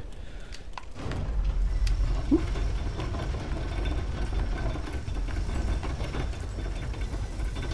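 A stone lift rumbles low and steadily as it descends.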